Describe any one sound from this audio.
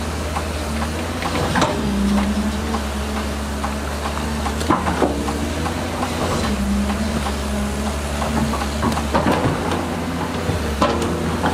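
An excavator engine rumbles steadily.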